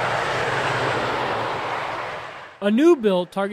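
Highway traffic rushes by steadily and then fades.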